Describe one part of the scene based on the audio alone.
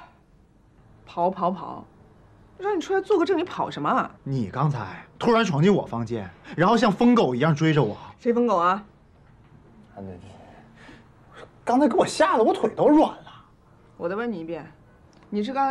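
A young woman speaks sharply and with irritation, close by.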